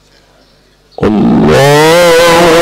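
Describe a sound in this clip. A man chants loudly and melodiously through a microphone.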